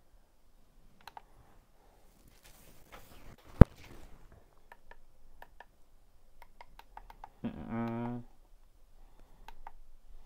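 Plastic buttons click softly.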